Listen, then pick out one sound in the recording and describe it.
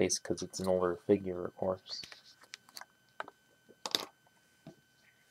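Small plastic toy pieces click and snap together.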